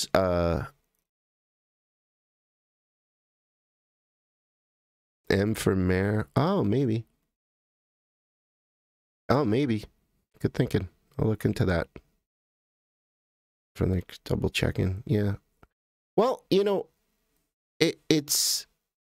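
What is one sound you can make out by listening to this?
A man speaks close to a microphone in short bursts with pauses.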